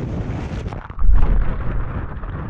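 A kayak plunges into churning water with a heavy thud.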